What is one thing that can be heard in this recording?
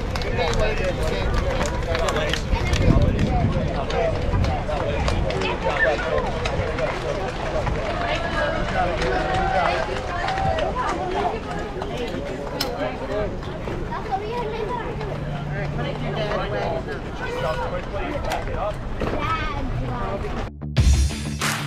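Hands slap together in quick high fives.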